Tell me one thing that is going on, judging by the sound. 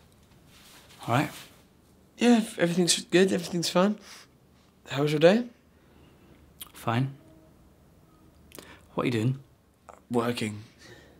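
A young man speaks calmly in short phrases.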